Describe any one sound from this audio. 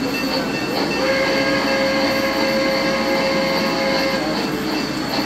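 A model train whistle blows.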